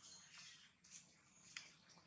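A monkey nibbles on a dry twig with soft clicks.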